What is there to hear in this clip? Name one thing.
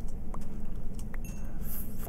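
Sand crumbles as a block is broken.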